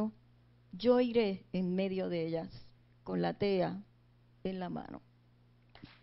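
A woman reads aloud into a microphone, heard through loudspeakers.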